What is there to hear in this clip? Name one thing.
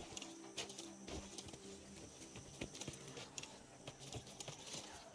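Footsteps tread steadily on stone and grass.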